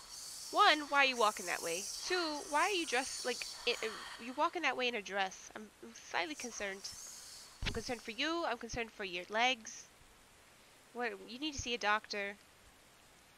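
A young woman talks with animation into a headset microphone.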